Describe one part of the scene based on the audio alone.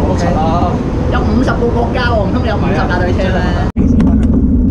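Several young men talk with animation nearby.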